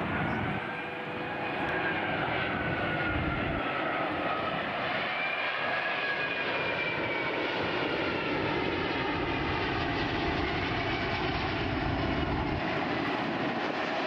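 A large jet airliner roars low overhead with a steady, whining engine rumble.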